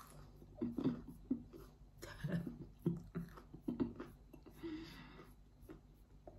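A middle-aged woman chews food and smacks her lips softly.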